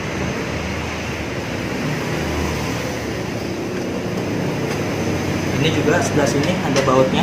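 A metal tool scrapes and clinks against metal parts.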